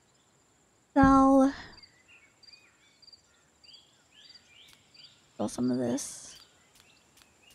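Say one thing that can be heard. A young woman exclaims loudly and playfully through a microphone.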